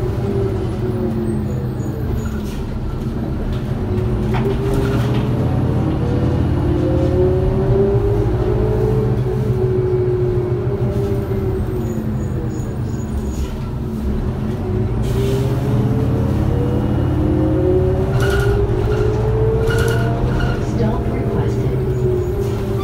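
A bus engine drones and whines, rising and falling in pitch as the bus speeds up and slows down.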